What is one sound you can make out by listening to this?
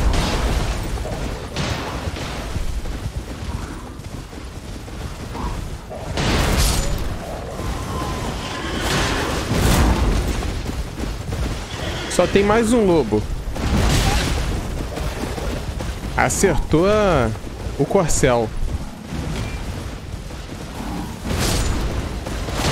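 A horse's hooves gallop over the ground.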